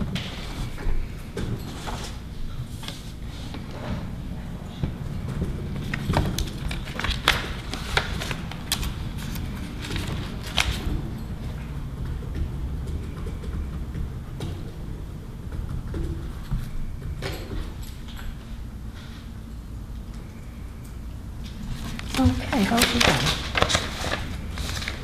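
Paper rustles as pages are handled and turned.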